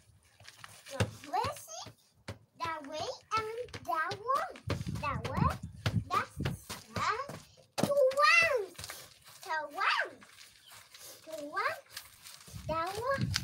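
A young child babbles and squeals excitedly nearby.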